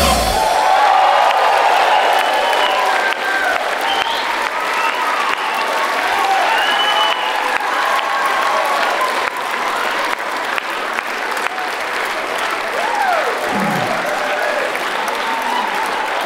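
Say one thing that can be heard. A crowd claps hands rapidly.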